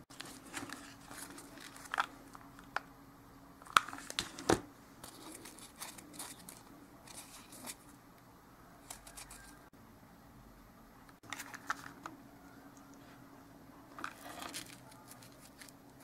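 A plastic glue gun clicks and knocks against a table.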